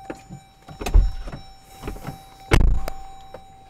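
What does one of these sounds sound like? A car door thumps.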